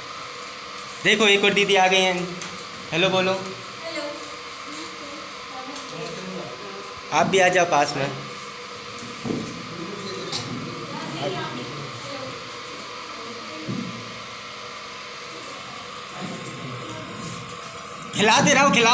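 Young women talk and chat nearby.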